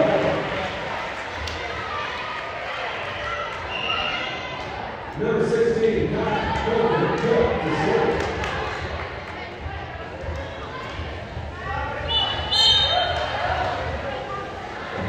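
Players call out and shout to each other in an echoing gym.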